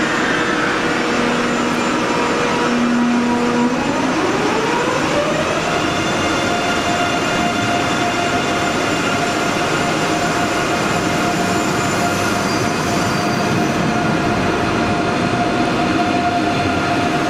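An electric train pulls away with a motor whine that rises in pitch, then holds steady.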